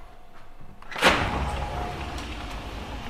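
A window slides open with a rattle.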